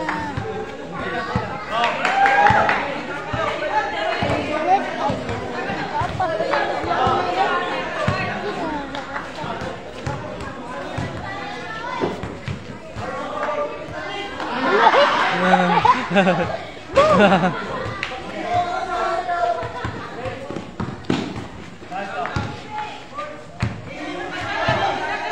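Young men and boys chatter and call out nearby.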